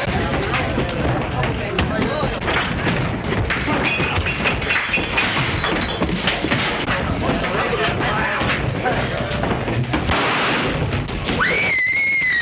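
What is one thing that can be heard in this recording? A crowd of men shouts and cheers excitedly.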